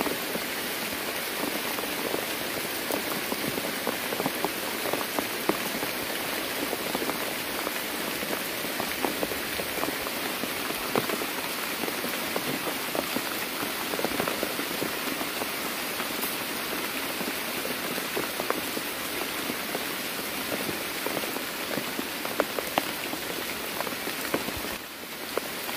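Steady rain falls and patters on leaves.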